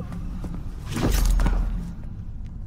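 A body thuds heavily onto a stone floor.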